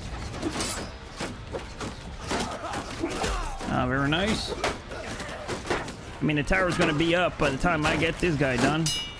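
Swords clang against shields in a close fight.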